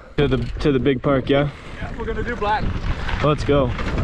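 Bike tyres crunch on loose gravel.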